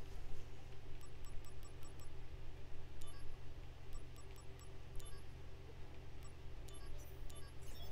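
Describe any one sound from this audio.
Soft electronic menu ticks sound in quick bursts.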